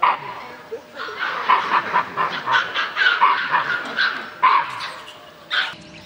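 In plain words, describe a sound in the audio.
Monkeys squeal and chatter close by.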